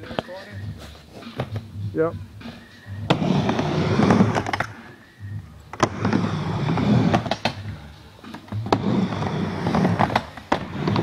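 A skateboard deck clacks sharply against the ramp.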